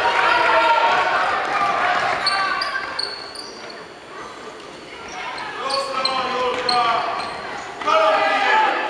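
Young girls shout and call out to each other in a large echoing hall.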